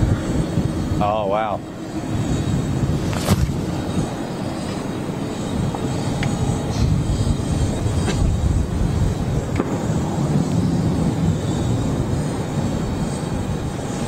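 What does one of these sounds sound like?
A large jet airliner's engines rumble steadily as it taxis slowly past.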